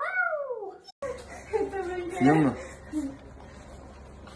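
A small dog whines and yelps close by.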